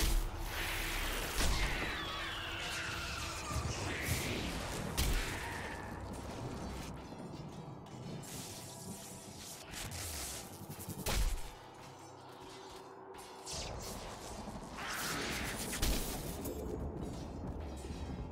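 Metallic hits and impacts clash repeatedly.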